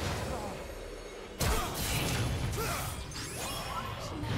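Game spells burst and crackle during a fight.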